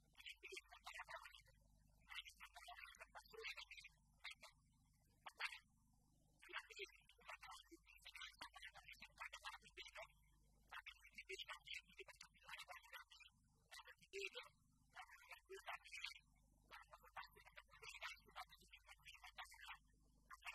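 An elderly man reads out a speech through a microphone.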